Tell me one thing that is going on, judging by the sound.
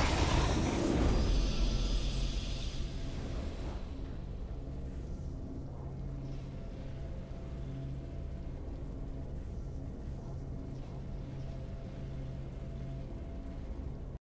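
A triumphant victory fanfare plays and settles into calm music.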